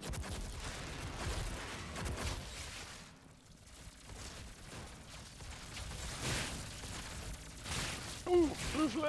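Gunfire and explosions crackle and rumble in a video game.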